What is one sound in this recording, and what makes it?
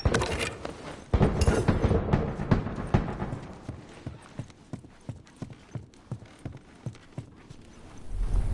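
Footsteps patter quickly on a hard floor.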